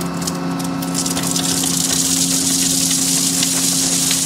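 Gravel pours from a bucket and rattles down.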